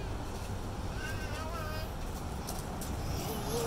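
A toddler babbles in a high voice close by.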